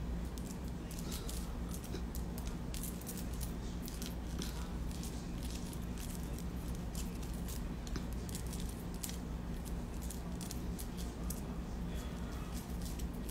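Metal jewelry and beads clink and rattle close by.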